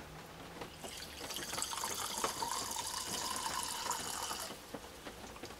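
Wine pours from a tap into a glass with a steady splashing trickle.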